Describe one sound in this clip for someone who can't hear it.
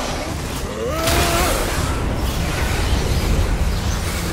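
Ice shatters and crackles loudly.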